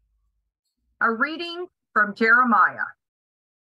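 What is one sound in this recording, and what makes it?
A woman speaks up clearly and close, heard through an online call.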